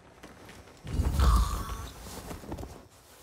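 A body thuds in a brief struggle.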